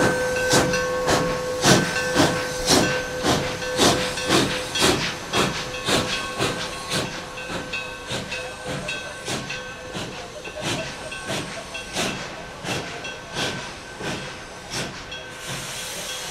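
A steam locomotive chuffs in a steady rhythm as it pulls away, slowly fading.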